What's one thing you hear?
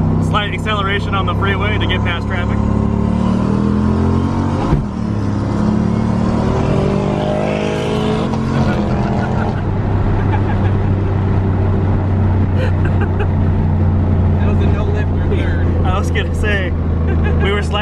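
A car engine hums steadily at speed.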